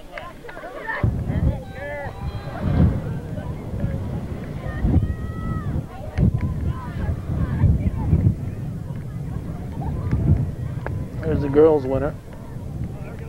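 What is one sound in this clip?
Young women chat and laugh close by, outdoors.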